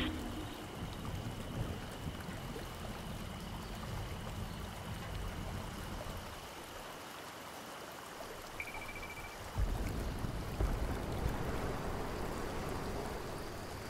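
A low wind rumbles and gusts.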